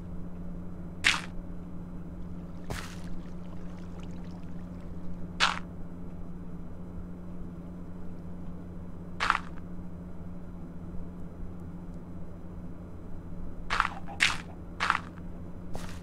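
Game sound effects of dirt blocks being placed thud one at a time.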